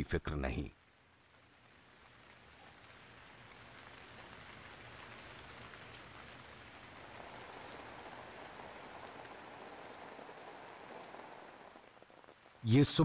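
Rain patters steadily on leaves.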